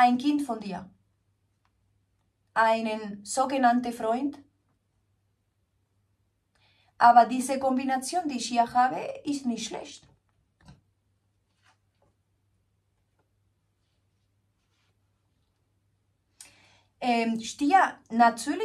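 A woman speaks calmly and warmly close to a microphone, with pauses.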